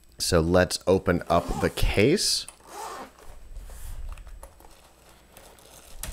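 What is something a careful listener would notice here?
Hands pat and rub a soft fabric case.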